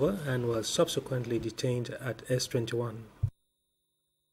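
A man speaks calmly into a microphone.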